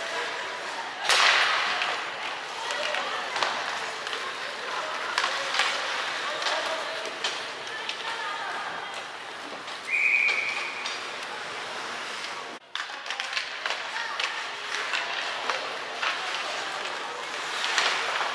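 Ice skates scrape and swish across the ice in a large echoing arena.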